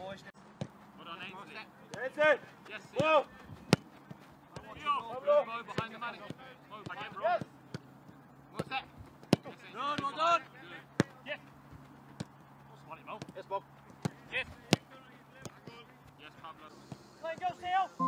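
A football is kicked on a grass pitch.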